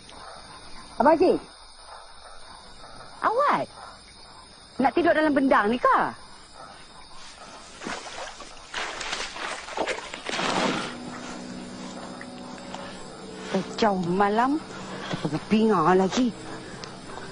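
A woman calls out anxiously in a raised voice.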